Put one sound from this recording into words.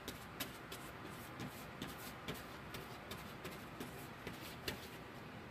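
A paintbrush brushes and scrapes across cardboard.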